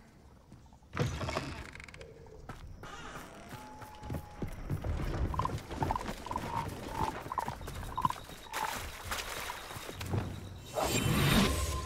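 Footsteps run over grass and earth.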